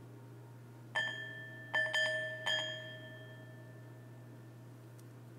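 A small metal bowl chimes brightly several times in quick succession.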